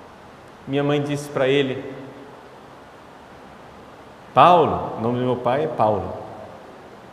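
A man speaks slowly and expressively into a microphone, with a slight echo.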